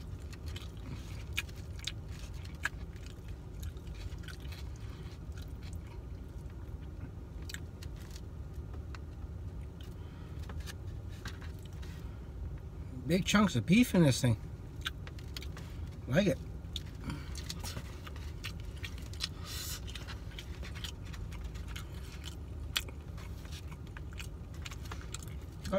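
A man chews food with his mouth close by.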